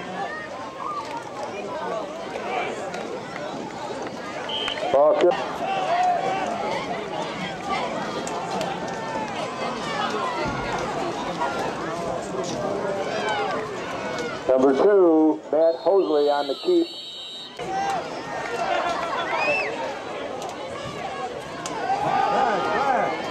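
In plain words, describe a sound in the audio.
Spectators shout and cheer during a play.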